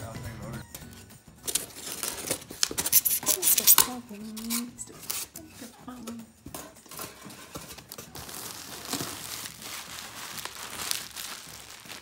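Plastic wrap and foam packing crinkle and rustle close by.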